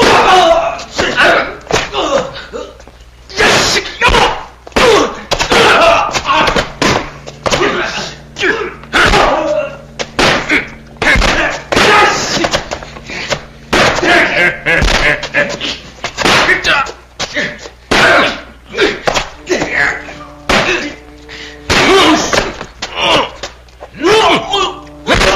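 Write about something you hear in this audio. Men grunt and shout loudly close by.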